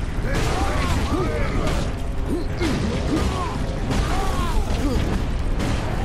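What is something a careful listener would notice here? Blades hack and thud in close combat.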